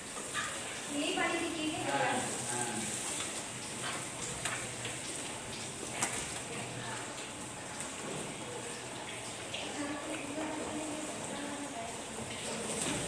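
A young woman speaks nearby with animation.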